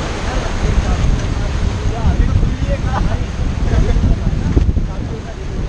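Young men shout and chatter excitedly nearby.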